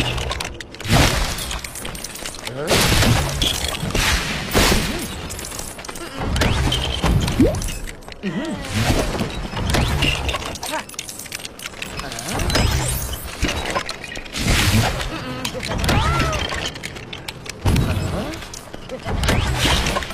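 Magic spells burst with loud bangs and whooshes.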